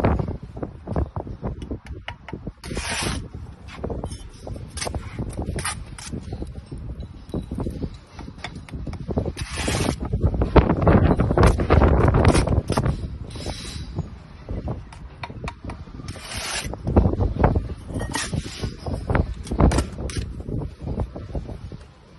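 A brick is set down with a knock on a wall.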